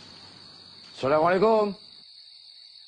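A man speaks a short greeting calmly and close by.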